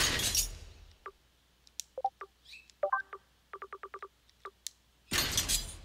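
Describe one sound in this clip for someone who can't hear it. Short electronic menu blips and clicks sound in quick succession.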